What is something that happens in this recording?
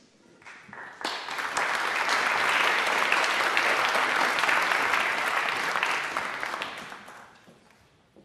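A crowd applauds in a large hall, then fades.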